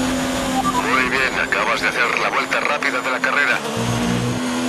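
Tyres screech as a racing car brakes hard for a corner.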